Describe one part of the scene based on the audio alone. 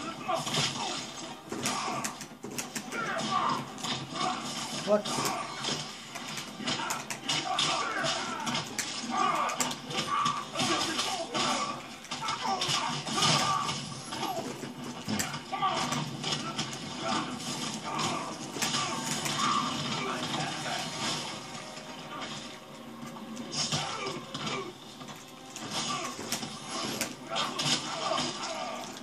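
Punches and kicks land with sharp thuds through a television speaker.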